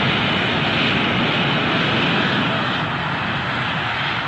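A jet fighter roars past.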